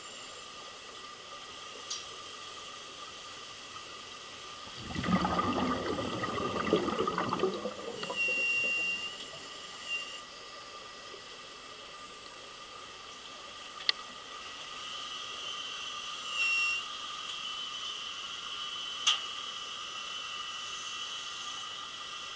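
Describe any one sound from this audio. Bubbles from divers' breathing gear gurgle and rush underwater.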